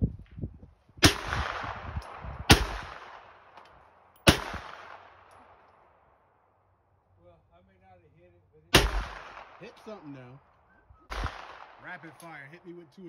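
A rifle fires loud single shots that echo outdoors.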